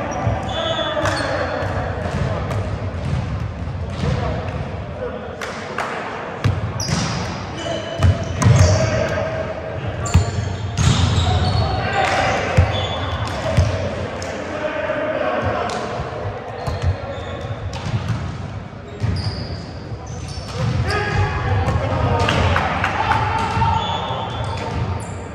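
Young men call out and chatter throughout, echoing in a large hall.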